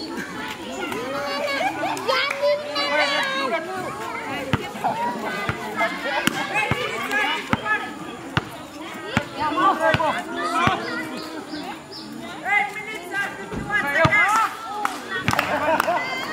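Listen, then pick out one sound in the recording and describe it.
Several young men shout and talk with animation outdoors.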